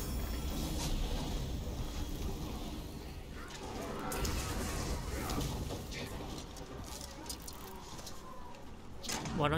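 Swords clash and thud in a fight.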